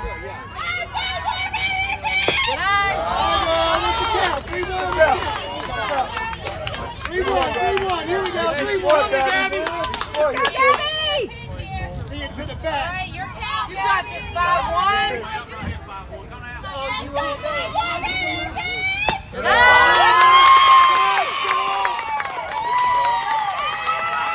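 Young women chant and cheer loudly outdoors.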